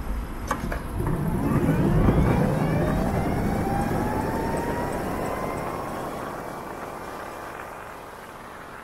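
A motorcycle engine revs up close by, rising steadily in pitch as it speeds up.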